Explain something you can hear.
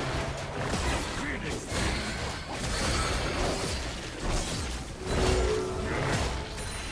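Game spell effects whoosh and crackle with repeated impacts during a fight.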